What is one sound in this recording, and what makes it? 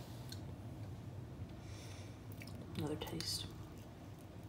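A metal spoon scrapes and scoops soft avocado flesh.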